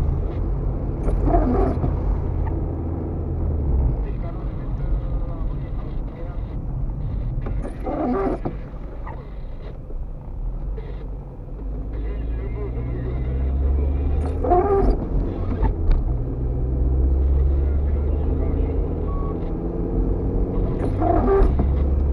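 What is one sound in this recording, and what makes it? Windshield wipers swish across wet glass every few seconds.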